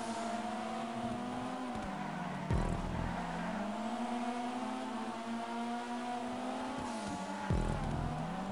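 Tyres screech on asphalt through a bend.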